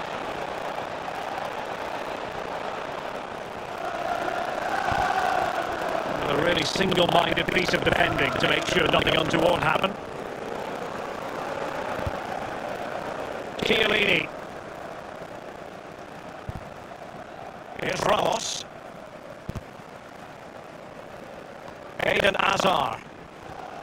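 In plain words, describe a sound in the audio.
A stadium crowd murmurs and chants steadily.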